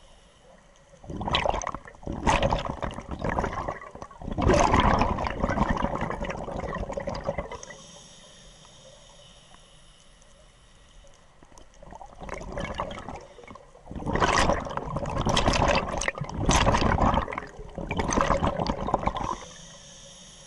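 Scuba air bubbles rush and gurgle close by underwater, in long bursts.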